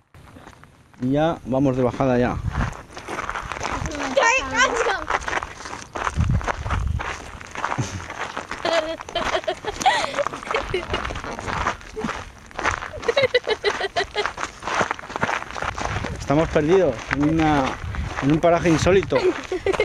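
Young girls talk and laugh close by.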